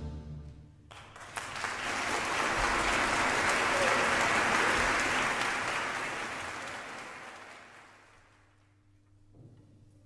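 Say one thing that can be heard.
A large audience bursts into loud applause in an echoing hall, then the applause fades.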